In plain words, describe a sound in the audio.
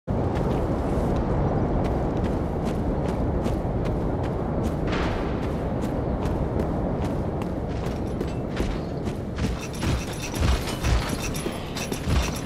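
Footsteps of a runner in armour crunch over the ground.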